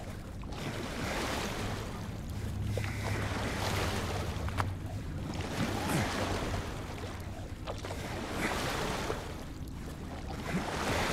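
Oars dip and splash through water in a slow, steady rhythm.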